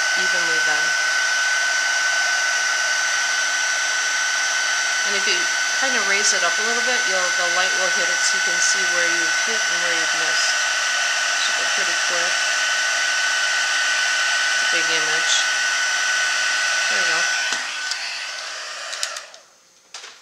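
A heat gun blows with a loud, steady whine and rush of air, then switches off.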